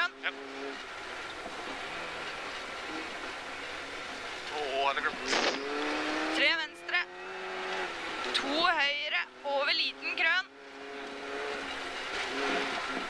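A rally car engine roars and revs up and down sharply.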